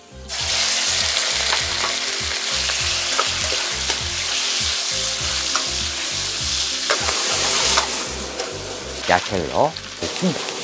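Meat sizzles loudly in hot oil.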